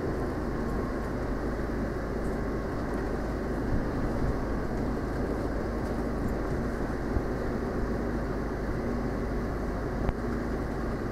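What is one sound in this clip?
Fabric rustles and brushes close by.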